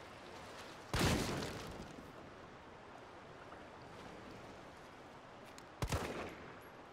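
A pistol fires loud single shots that echo in a tunnel.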